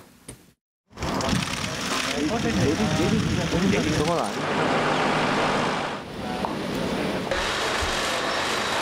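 A crowd of people chatter and bustle outdoors.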